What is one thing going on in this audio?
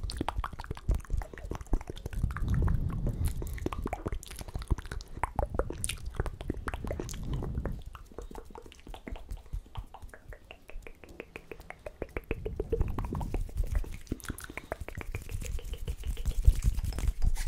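A young man whispers softly, very close to a microphone.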